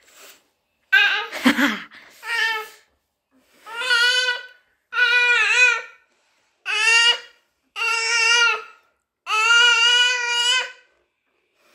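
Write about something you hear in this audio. A baby whines and fusses close by in short, drawn-out cries.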